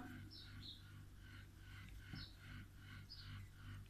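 A glass is set down with a soft thud.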